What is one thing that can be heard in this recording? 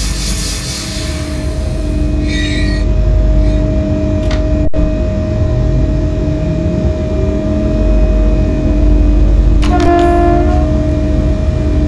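Train wheels rumble steadily on the rails.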